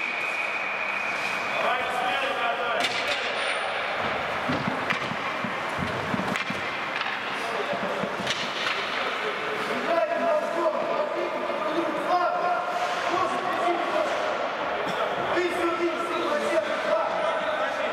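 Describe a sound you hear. Hockey sticks clack against a puck and the ice now and then.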